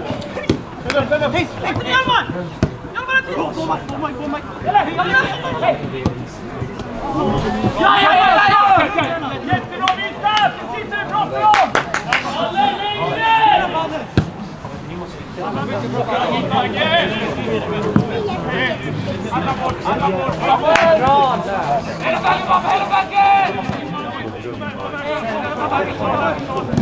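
Men talk and call out close by.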